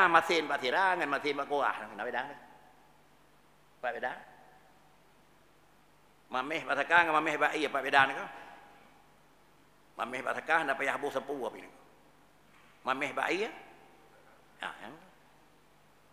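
An elderly man speaks with emphasis into a microphone, in bursts with pauses, in a room with slight echo.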